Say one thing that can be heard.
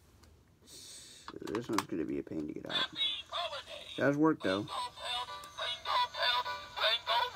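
A plush toy plays a tinny electronic song.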